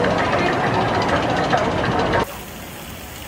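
A crowd of people chatter loudly nearby.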